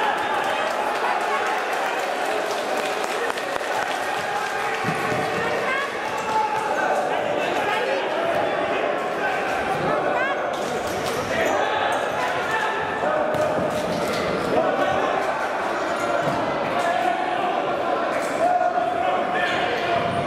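A futsal ball is kicked in a large echoing hall.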